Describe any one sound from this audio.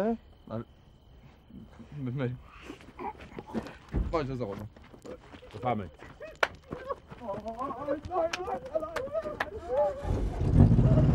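Several men talk with animation close by.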